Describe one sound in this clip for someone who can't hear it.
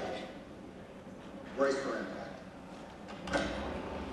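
A man speaks calmly over a radio, heard through a loudspeaker.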